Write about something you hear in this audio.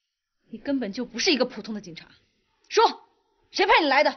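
A woman speaks sharply and tensely, close by.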